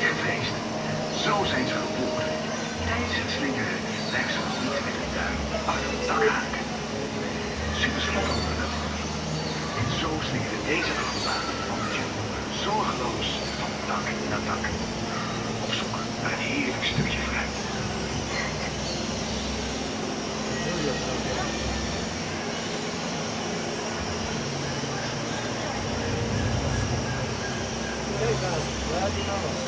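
A stream flows and gurgles steadily.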